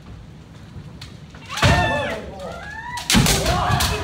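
Bamboo swords clack and smack against armour.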